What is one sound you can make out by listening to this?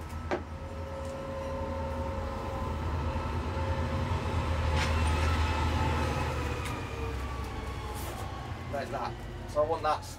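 A wooden board scrapes and knocks on a wooden floor.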